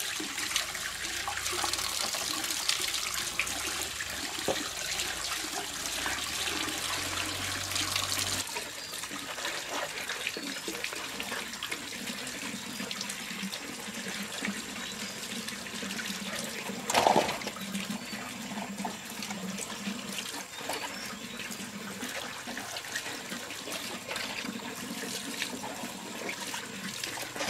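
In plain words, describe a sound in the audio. Hands rub and rinse vegetables under running water.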